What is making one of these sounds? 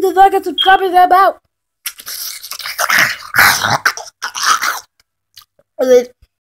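A young man talks close to a phone microphone, with animation.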